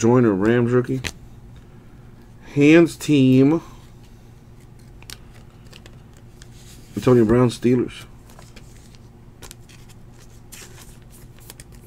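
Glossy cards rustle and tap softly as they are shuffled by hand.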